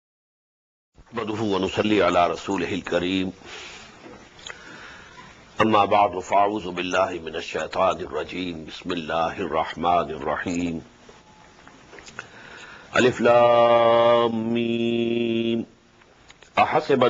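An elderly man speaks slowly and steadily through a microphone.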